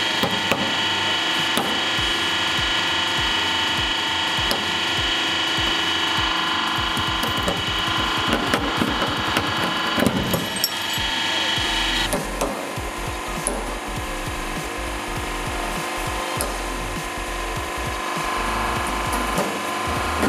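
A hydraulic press hums steadily.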